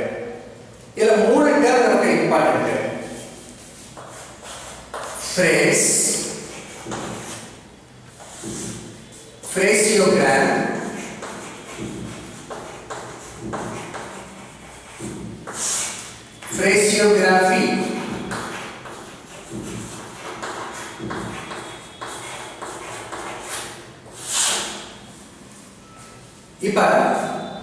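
An older man speaks calmly, like a lecturer, close by.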